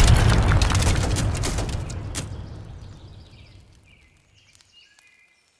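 A loud explosion booms and slowly rumbles away.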